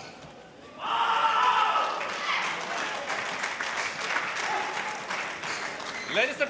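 A crowd cheers and claps in a large echoing hall.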